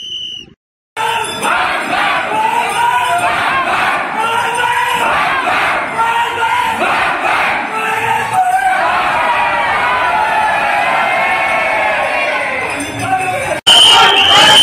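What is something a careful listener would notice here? A crowd of young men chants and shouts loudly in an echoing room.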